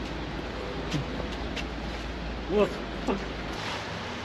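A man walks quickly on wet pavement outdoors.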